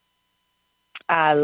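A man speaks close into a microphone.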